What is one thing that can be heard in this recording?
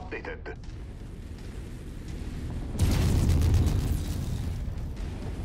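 Energy weapons fire with a loud, crackling buzz.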